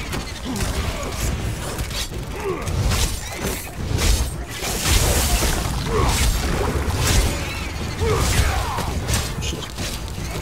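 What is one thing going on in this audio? Swords slash and strike in quick, repeated blows.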